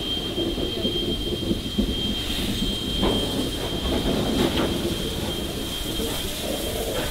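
A steam locomotive rumbles close by.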